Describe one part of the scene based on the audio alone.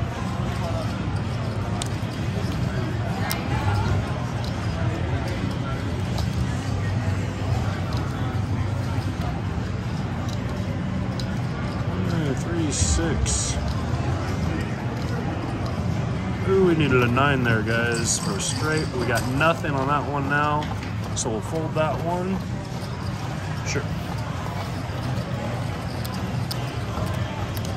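Casino chips clack together on a table.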